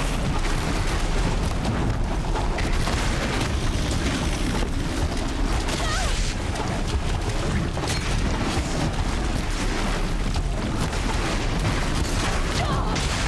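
Sparks and blasts burst from a mechanical beast as arrows strike it.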